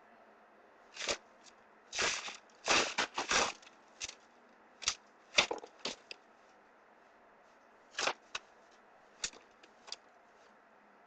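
Paper cards and plastic wrappers rustle and scrape in short bursts.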